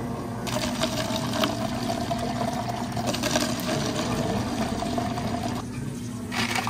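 Water streams from a tap into a plastic cup.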